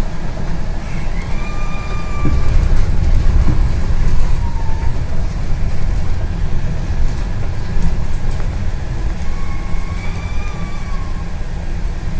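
A bus's motor whines briefly in a high tone as the bus speeds up and slows down.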